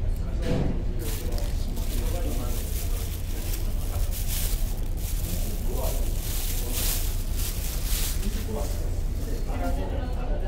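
A plastic bag rustles loudly as hands shake it out.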